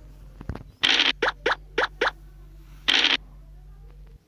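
Dice rattle briefly as they roll.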